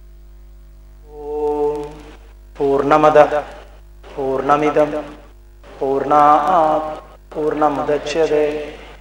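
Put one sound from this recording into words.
A man chants in a slow, drawn-out voice.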